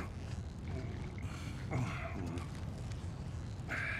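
A man rustles his jacket.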